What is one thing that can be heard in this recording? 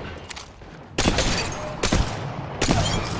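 Rapid gunfire bursts loudly in quick volleys.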